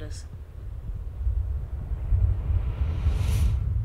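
A glowing portal hums and swells with a rising whoosh.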